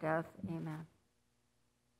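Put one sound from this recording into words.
A middle-aged woman speaks briefly into a microphone in an echoing hall.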